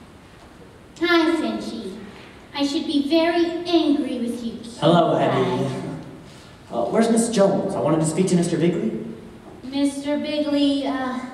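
A woman speaks loudly and with animation in an echoing hall.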